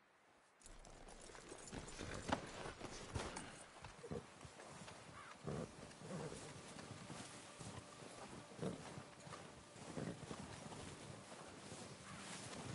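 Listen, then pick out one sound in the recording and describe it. Boots crunch through deep snow.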